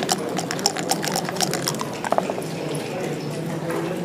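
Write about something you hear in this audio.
Dice rattle and clatter onto a wooden board.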